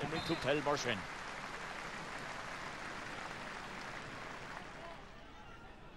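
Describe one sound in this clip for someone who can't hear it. A crowd cheers and applauds from the stands.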